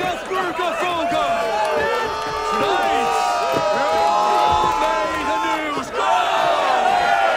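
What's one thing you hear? A crowd of men cheers and shouts together.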